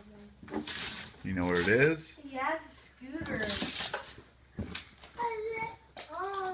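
A child rustles and crinkles paper close by.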